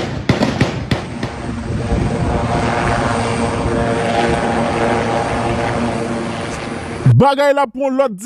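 A helicopter's rotor thumps and its engine whines close by.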